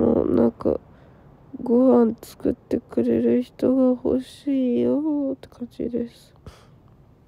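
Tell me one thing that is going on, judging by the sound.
A young woman speaks softly and close to the microphone.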